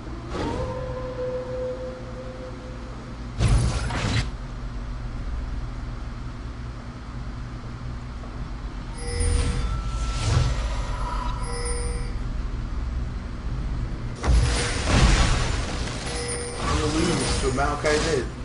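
Magic spells whoosh and crackle in bursts over a low steady hum.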